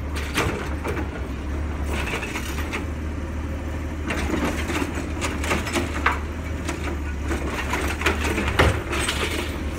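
A garbage truck's hydraulic arm whines as it lifts and tips a bin.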